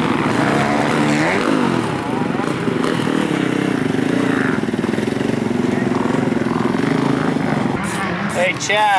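A dirt bike engine roars and revs nearby.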